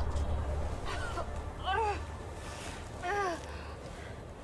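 A young woman groans and pants in pain close by.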